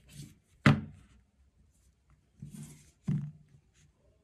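A phone knocks against a hard surface as it is set down.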